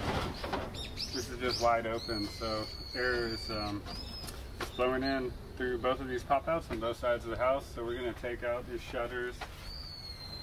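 An older man talks calmly nearby.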